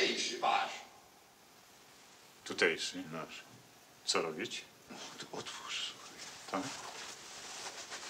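A middle-aged man speaks calmly nearby, in short phrases.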